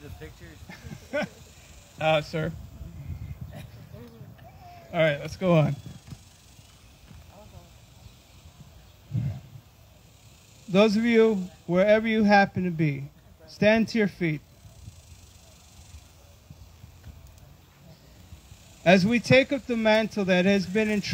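A man speaks into a microphone outdoors, in short phrases with long pauses.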